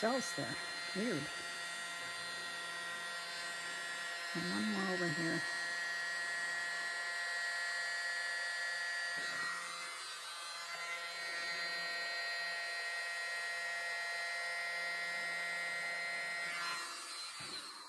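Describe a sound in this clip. A small handheld electric blower whirs.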